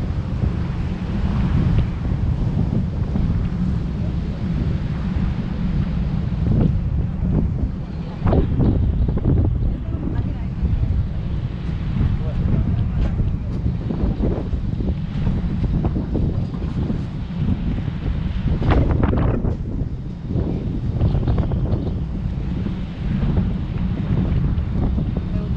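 Wind rumbles loudly across the open deck.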